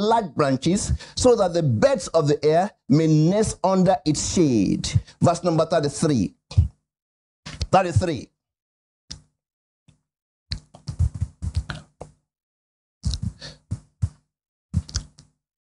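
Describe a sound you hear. A man preaches with animation into a microphone.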